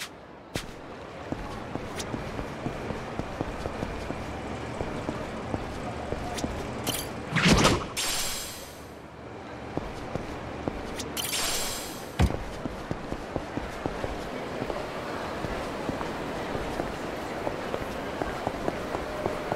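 Footsteps tap quickly on hard pavement.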